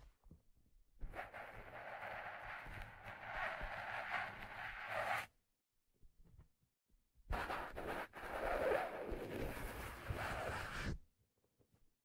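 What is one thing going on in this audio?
Fingers rub and scratch across a leather hat, very close.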